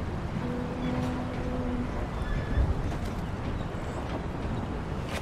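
Footsteps clang down metal stairs.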